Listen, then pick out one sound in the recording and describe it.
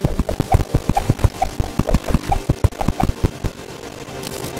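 Rapid game hit sounds thump as a character fights enemies.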